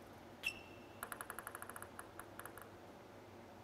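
A ping-pong ball bounces quickly and repeatedly on a table.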